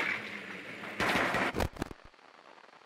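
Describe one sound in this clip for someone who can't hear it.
Electronic static crackles and hisses in a burst.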